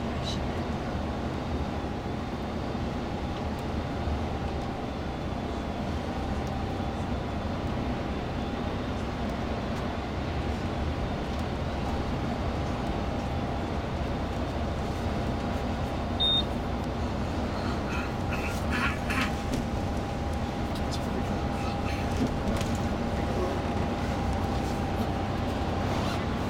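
Tyres roar steadily on a motorway surface.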